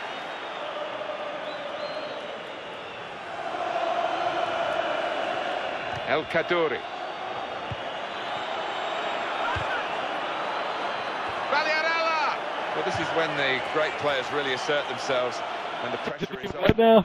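A stadium crowd roars steadily, swelling louder for a while.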